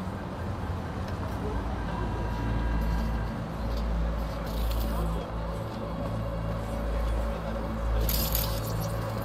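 Footsteps tap on a hard pavement.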